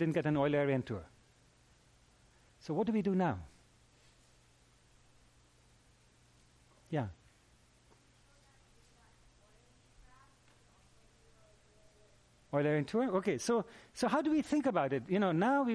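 A middle-aged man lectures through a microphone in a large room, speaking in bursts with long pauses.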